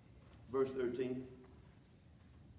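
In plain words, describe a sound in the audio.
A man speaks briefly through a microphone, then pauses.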